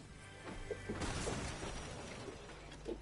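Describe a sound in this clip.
A treasure chest bursts open with a sparkling chime.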